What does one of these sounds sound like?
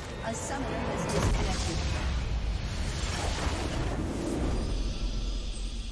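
A video game's magic blast bursts with a loud crackling roar.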